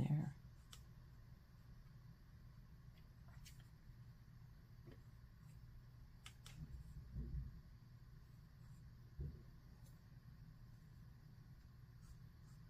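A paintbrush clicks and taps against a paint palette.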